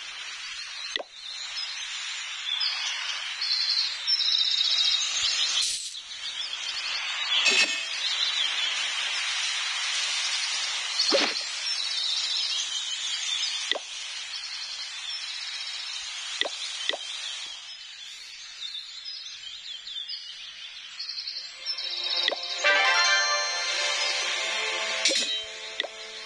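Short clicks sound as game menus open and close.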